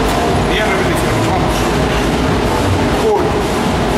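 Weight plates clank on a leg press machine.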